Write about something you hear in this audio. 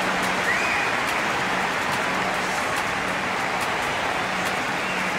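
A crowd cheers and applauds loudly in a large stadium.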